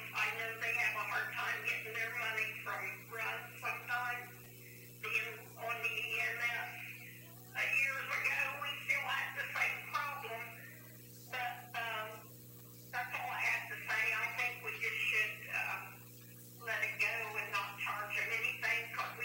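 A person speaks calmly, heard from across a room with a hollow echo.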